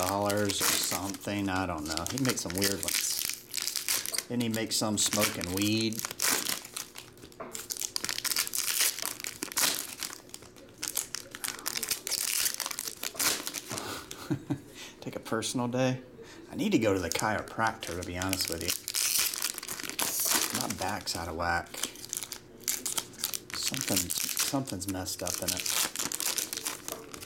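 Foil wrappers crinkle and tear as packs are opened.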